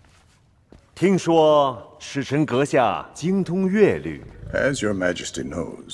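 A man speaks calmly in an echoing hall.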